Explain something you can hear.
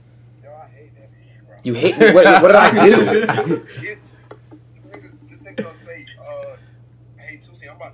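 Several young men talk and laugh in the room.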